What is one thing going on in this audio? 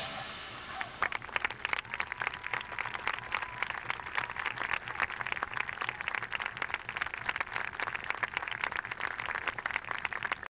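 Drums and mallet percussion play a quick, busy rhythm outdoors.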